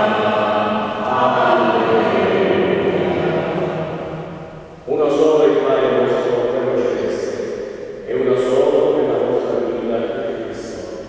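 A man sings slowly through a microphone, echoing in a large hall.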